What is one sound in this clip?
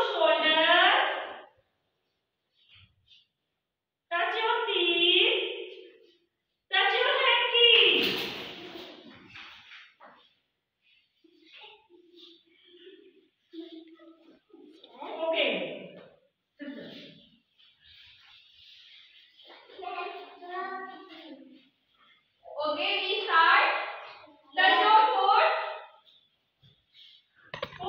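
A young woman speaks calmly to the children.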